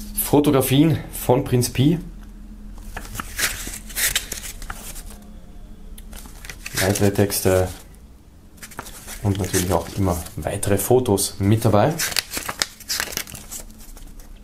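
Paper pages rustle and flip as a booklet is leafed through.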